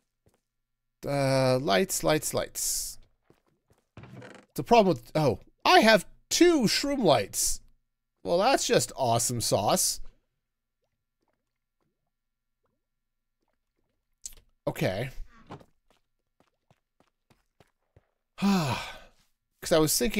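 A middle-aged man talks with animation into a close microphone, in bursts with pauses.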